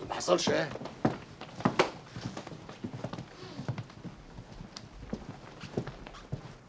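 Footsteps shuffle as several men walk out.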